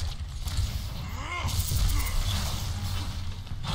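An electric beam weapon crackles and buzzes in a video game.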